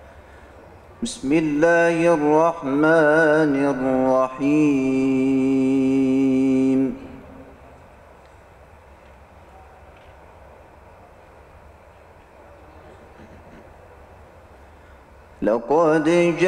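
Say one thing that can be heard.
A man chants in a long, wavering melody through a microphone.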